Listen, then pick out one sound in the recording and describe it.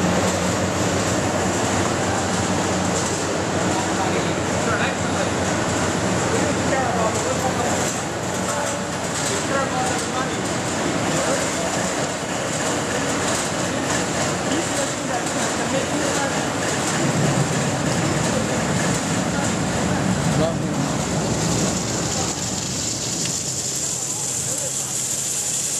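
Snack pieces patter and rustle along a vibrating conveyor.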